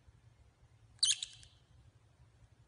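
A small bird chirps shrilly.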